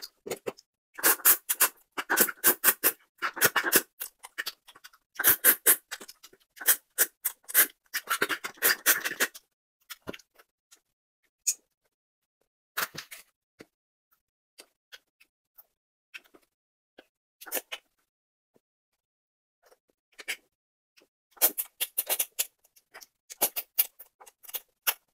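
A woman slurps noodles loudly, close to a microphone.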